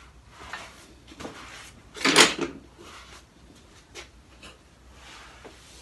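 A sheet of paper rustles and flaps as it is lifted.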